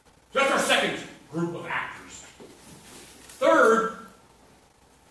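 A man speaks with animation to a room, heard from across a small hall.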